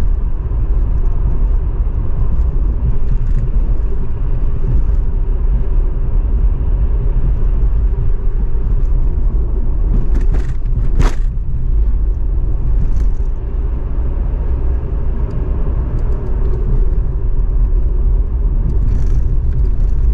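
A car engine hums steadily as tyres roll over the road, heard from inside the car.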